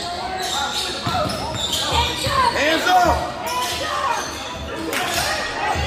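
A basketball bounces with dull thuds on the floor.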